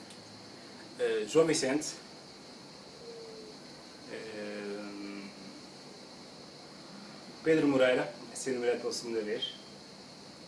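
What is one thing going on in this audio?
A young man speaks close by in short, animated bursts.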